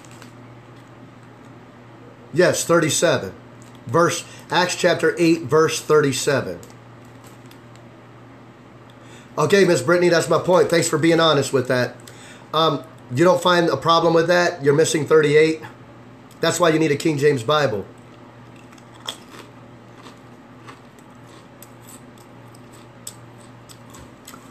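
A man crunches on a crisp chip.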